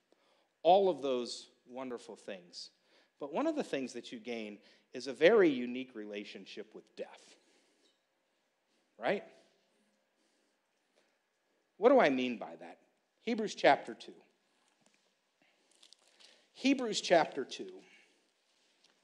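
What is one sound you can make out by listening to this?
A man speaks calmly, pausing between phrases.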